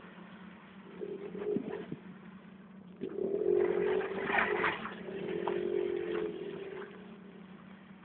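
A car engine revs loudly in short bursts.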